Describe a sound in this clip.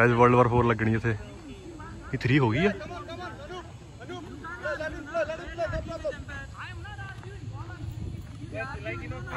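Several men talk and call out across an open field.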